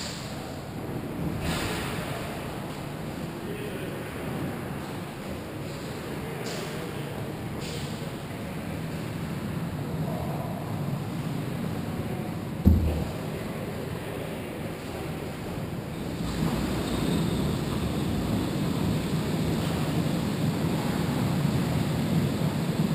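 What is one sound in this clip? Skate blades scrape and hiss on ice nearby.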